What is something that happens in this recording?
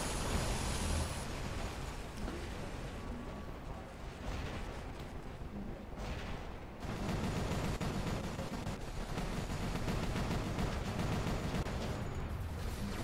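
Heavy robot footsteps thud steadily.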